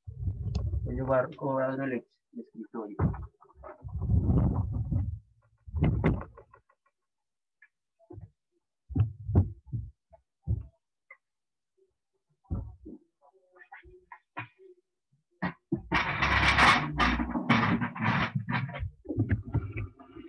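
Clothing brushes and rustles against the microphone.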